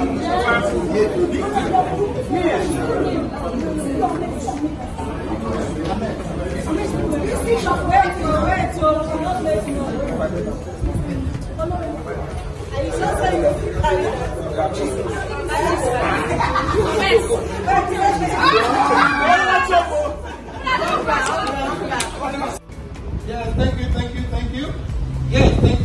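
A crowd of young people chatters and shouts outdoors.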